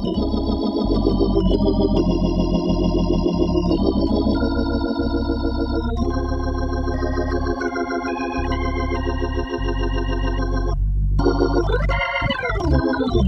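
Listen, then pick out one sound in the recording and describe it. Deep organ bass notes walk steadily beneath the chords.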